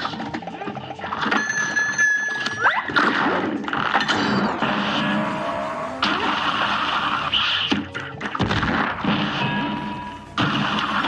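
Rapid cartoon gunfire shoots repeatedly.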